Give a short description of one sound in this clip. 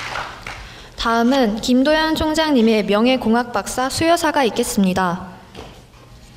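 A young woman announces into a microphone over loudspeakers in a large hall.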